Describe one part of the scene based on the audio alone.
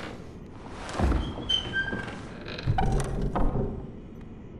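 A heavy wooden chest lid creaks open and thumps.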